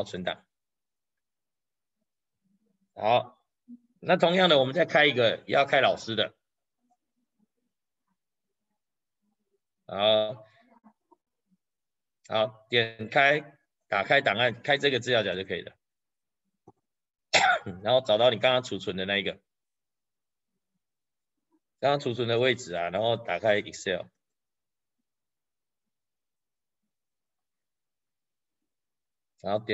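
A man speaks calmly in short phrases, close to a microphone, as if on an online call.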